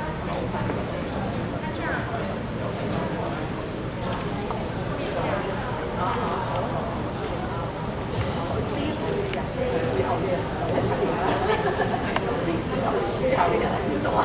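Many men and women chatter together in a busy, echoing hall.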